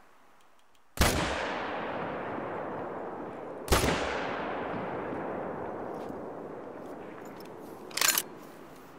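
A rifle fires loud shots that echo and roll away across open country.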